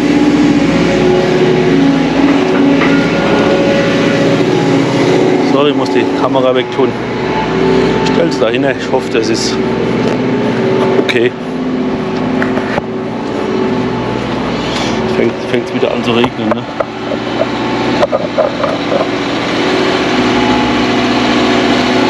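A diesel truck engine idles steadily nearby.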